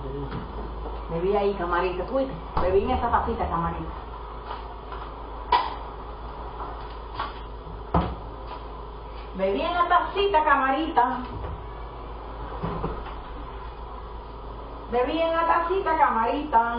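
A woman speaks in short bursts.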